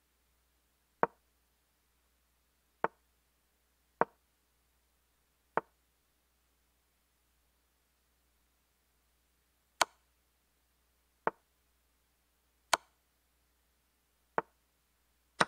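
A chess game plays short, sharp clicks as pieces are moved.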